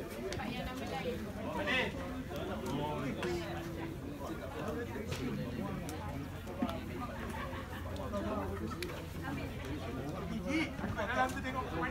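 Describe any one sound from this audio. Young men shout and call to each other outdoors at a distance.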